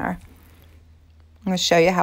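Liquid pours from a plastic jug into a cup.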